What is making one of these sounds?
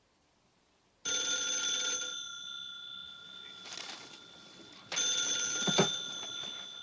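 A telephone rings loudly.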